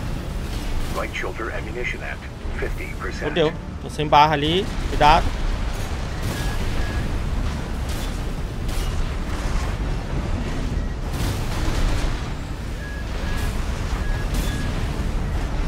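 Heavy gunfire and explosions rumble and boom steadily.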